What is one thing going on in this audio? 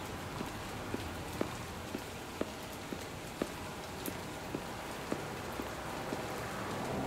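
Footsteps tap slowly on pavement.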